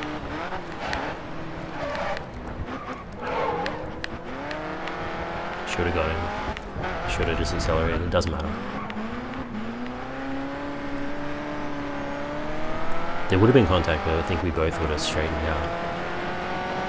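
A race car engine roars, rising in pitch and dropping with each gear change.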